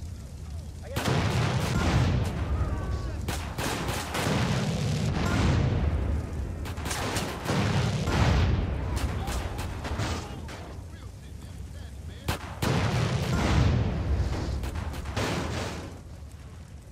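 A rocket launcher fires with a sharp whoosh.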